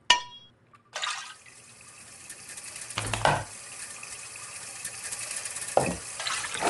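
Water bubbles and boils steadily in a pot.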